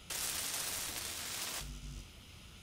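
A welding torch crackles and hisses with sparks.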